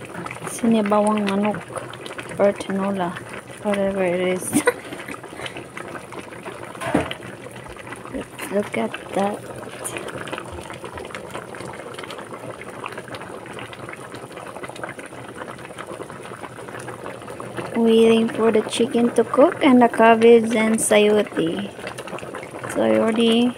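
A pot of soup simmers and bubbles.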